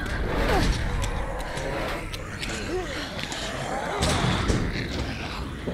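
A metal gate rattles and clanks.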